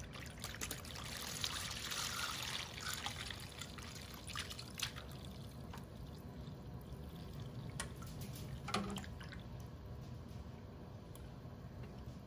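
Liquid pours and splashes steadily into a plastic tub.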